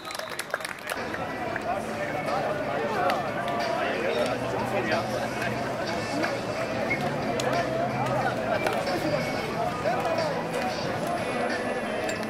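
Several men talk over each other outdoors.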